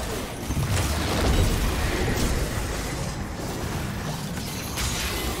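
Magic spells whoosh and crackle in a busy game battle.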